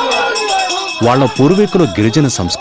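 A man sings loudly close by.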